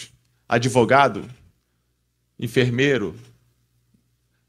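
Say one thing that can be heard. A man speaks with animation through a microphone, in short bursts.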